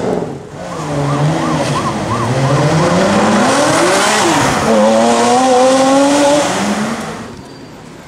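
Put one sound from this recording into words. A second sports car engine roars as it pulls away up the road.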